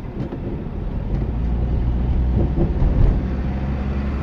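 Tyres thud over bumps in the road.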